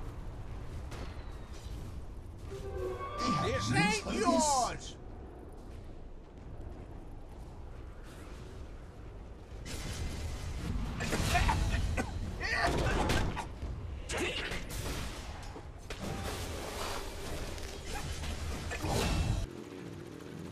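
Fantasy battle sound effects clash, whoosh and crackle.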